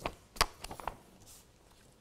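Paper rustles as a man handles a sheet.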